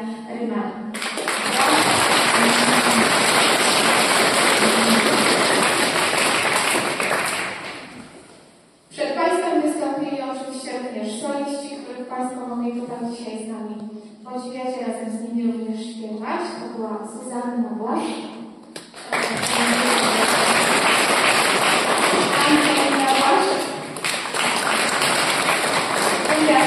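An audience claps loudly.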